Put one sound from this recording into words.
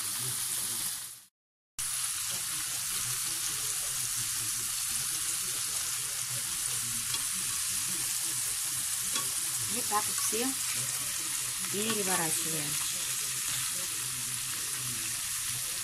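Shrimp sizzle steadily in hot oil in a pan.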